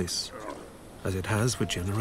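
A young man speaks quietly up close.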